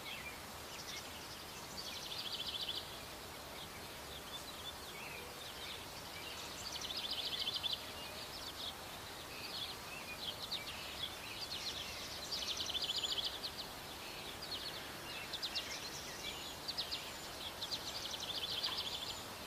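A hedgehog rustles through grass.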